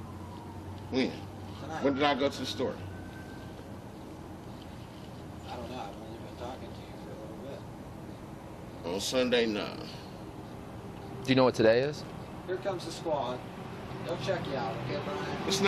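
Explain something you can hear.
A man speaks nearby in short bursts.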